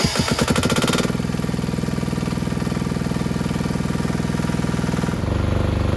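A diesel engine rumbles steadily at idle.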